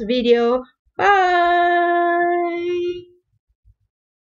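A middle-aged woman sings one long, steady note.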